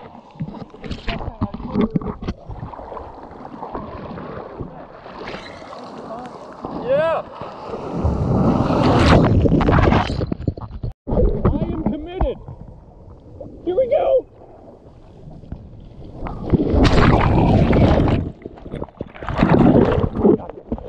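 Water sloshes and splashes close by.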